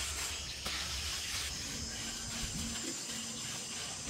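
Hands rub and smooth wet clay.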